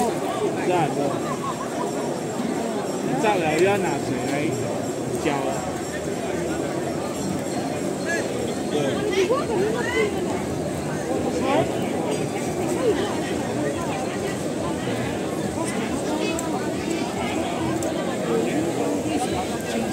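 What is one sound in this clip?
A bonfire crackles steadily.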